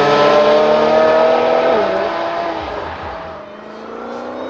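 Several sports car engines roar loudly as the cars accelerate away.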